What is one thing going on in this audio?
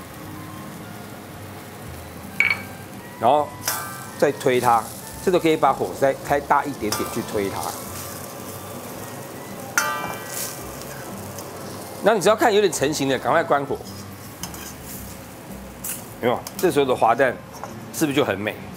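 Egg sizzles and bubbles in hot oil in a pan.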